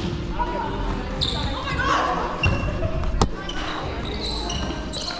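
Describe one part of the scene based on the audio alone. Players call out to each other across the hall.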